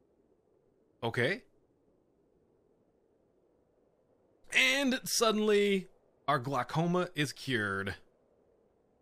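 A man talks briefly into a close microphone.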